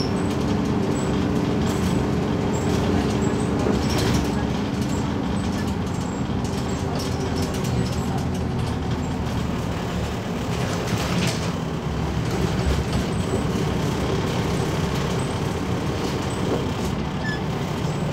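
A bus rattles and creaks over the road.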